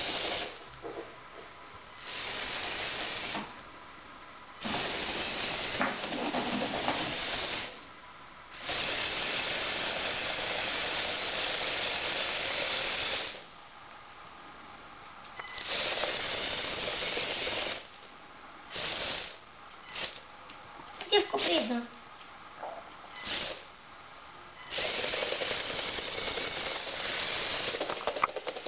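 Small electric motors whir in short bursts as a toy tracked vehicle drives.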